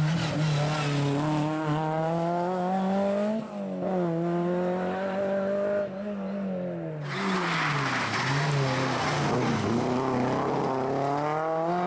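A rally car engine revs hard, rising and falling in pitch as the driver shifts gears.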